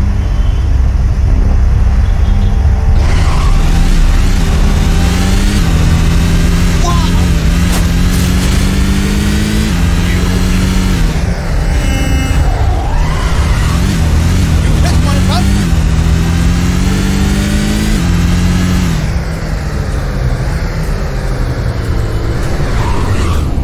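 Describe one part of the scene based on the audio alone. A car engine roars and revs up and down through the gears.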